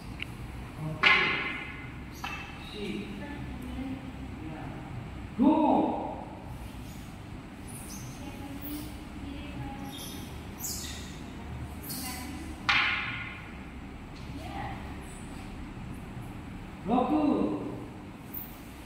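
Children shout sharply together in a large echoing hall.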